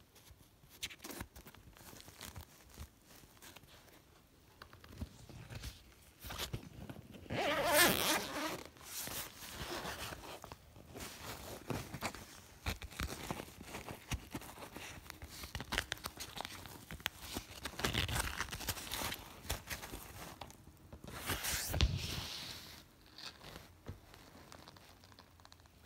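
Fabric rustles and scrapes as a backpack is handled close by.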